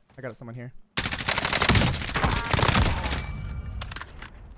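Rapid gunshots crack in a quick burst.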